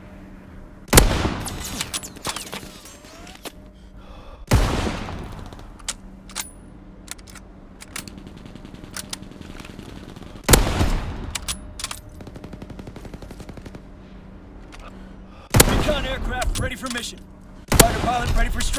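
Sniper rifle shots boom loudly with a ringing echo.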